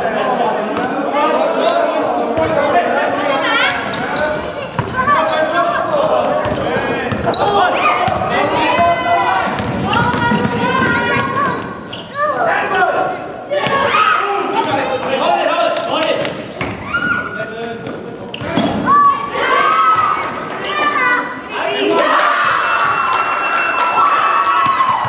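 Young men call out to each other across an echoing gym.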